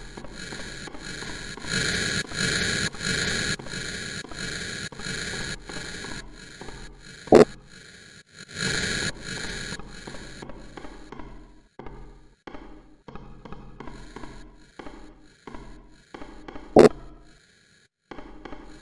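Footsteps thud steadily along an echoing corridor.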